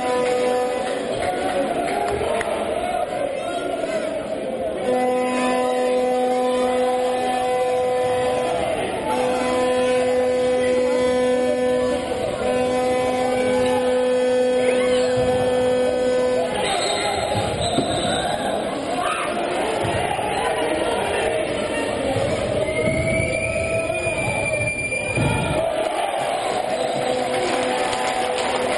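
A crowd cheers and chants in a large echoing hall.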